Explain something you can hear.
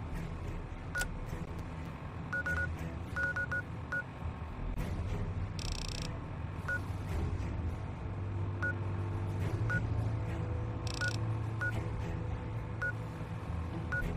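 A handheld device gives short, high electronic beeps now and then.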